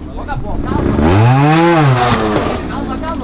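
A motorcycle engine revs up sharply and drops back.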